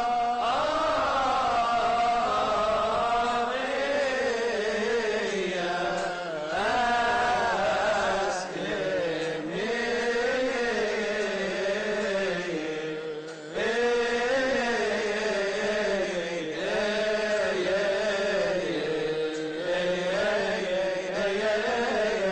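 A middle-aged man chants loudly into a microphone in a large echoing hall.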